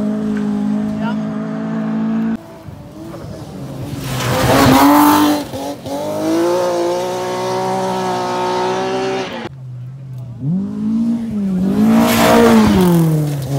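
Rally car engines roar and rev hard as cars race past.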